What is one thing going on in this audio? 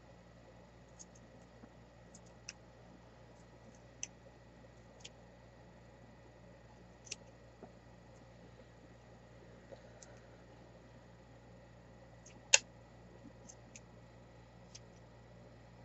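Small beads click softly on a tray.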